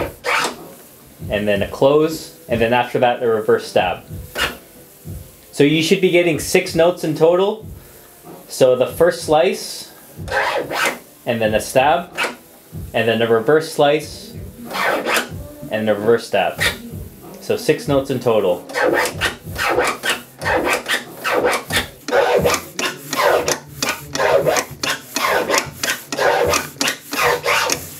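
A vinyl record is scratched back and forth in quick, choppy bursts.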